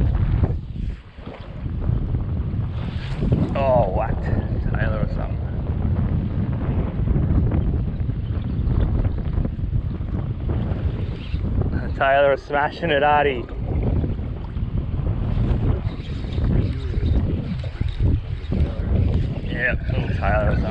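Wind rumbles and buffets steadily outdoors on open water.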